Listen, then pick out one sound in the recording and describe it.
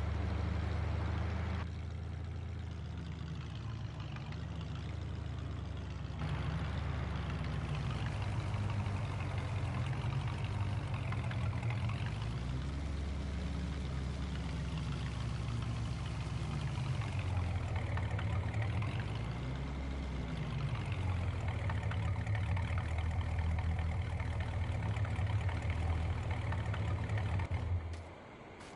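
A truck engine rumbles and revs up and down as it drives.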